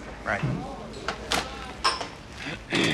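A telephone handset clatters as it is hung up.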